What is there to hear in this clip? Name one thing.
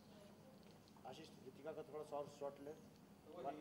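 A man speaks nearby in short phrases.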